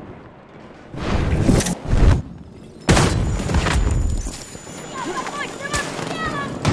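Loud gunshots crack and boom in short bursts.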